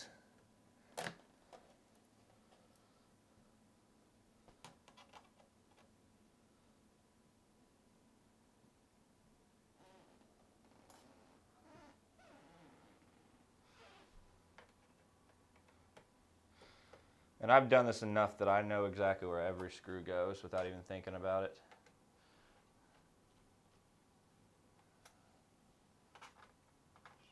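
A small screwdriver clicks and scrapes against metal screws.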